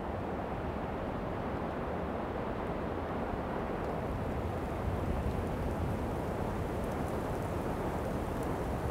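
Wind blows hard outdoors, rumbling against the microphone.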